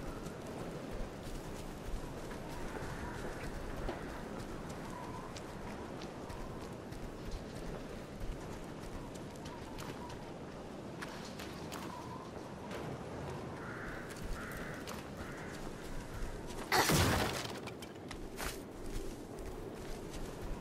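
Footsteps crunch over wet grass and gravel at a steady pace.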